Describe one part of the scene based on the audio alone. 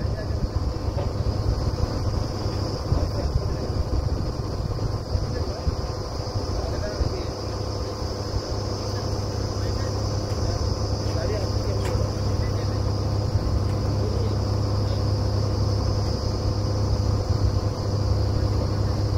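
A drilling rig's engine runs with a steady, loud rumbling drone outdoors.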